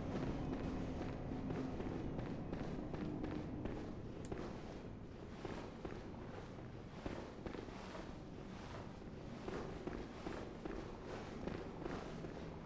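Footsteps thud steadily on a stone floor.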